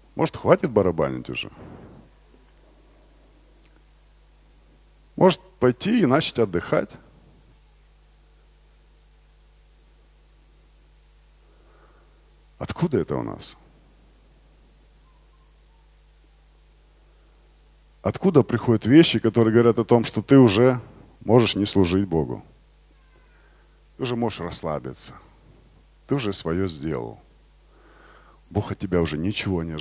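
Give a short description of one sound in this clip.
A man speaks with animation through a microphone and loudspeakers, with long pauses.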